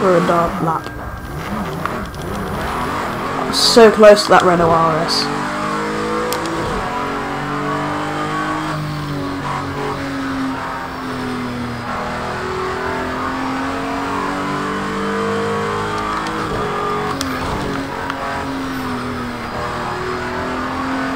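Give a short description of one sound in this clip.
A racing car engine roars, revving up and dropping as it shifts gears.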